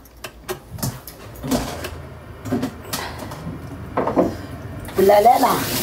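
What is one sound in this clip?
Dishes clink in a sink.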